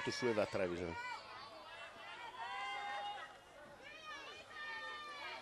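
A crowd of spectators chants and calls out in a large outdoor stand.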